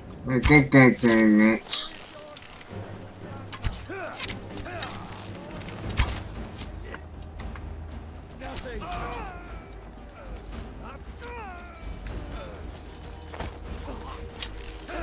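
A bowstring creaks and twangs as arrows are loosed.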